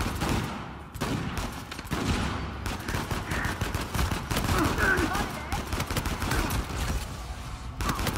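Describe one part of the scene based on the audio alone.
A pistol fires rapid shots close by.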